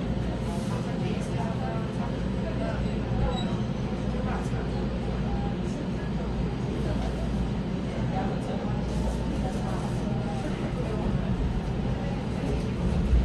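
An electric commuter train rumbles as it pulls away from a station, heard from inside a carriage.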